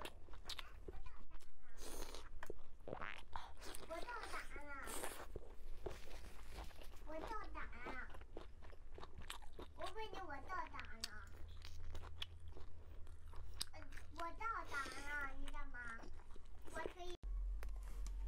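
A young woman chews and slurps food noisily close to a microphone.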